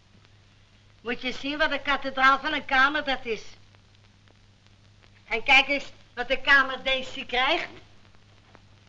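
A woman speaks loudly and with animation.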